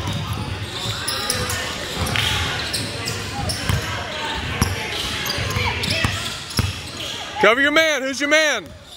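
Young players and onlookers call out in the echoing hall.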